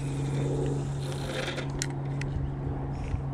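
A fishing reel clicks.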